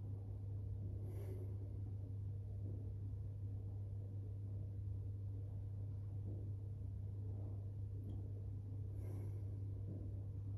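A woman breathes deeply and slowly nearby.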